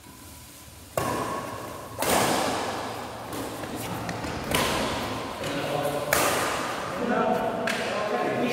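A racket strikes a shuttlecock with sharp smacks in a large echoing hall.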